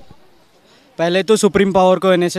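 A young man speaks into a microphone close by.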